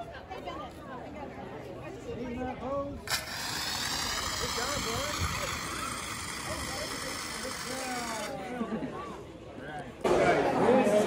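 Children and adults chatter nearby, outdoors.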